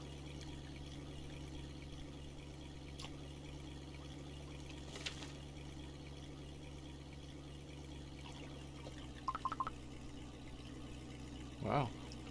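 A fishing reel clicks as its line is wound in.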